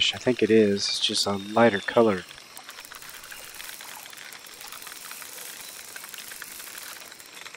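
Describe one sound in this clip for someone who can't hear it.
A fishing reel clicks softly as line is wound in.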